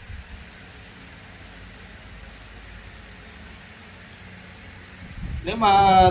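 A hot iron hisses faintly as it presses into soft wax.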